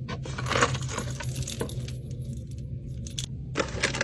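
Metal keychain charms jingle and clink.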